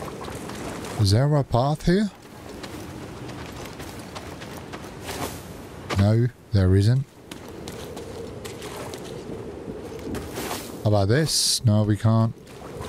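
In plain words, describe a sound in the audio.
A young man talks animatedly into a close microphone, in short bursts.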